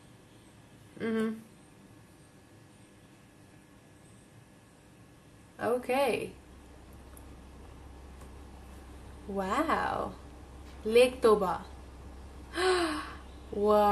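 A young woman speaks in short bursts, close to a microphone, with surprise and animation.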